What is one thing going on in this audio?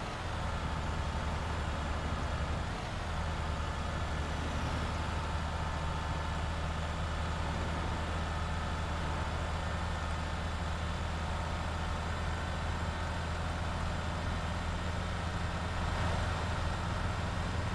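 A bus engine hums steadily as it drives along a highway.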